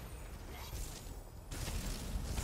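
Lightning crackles sharply.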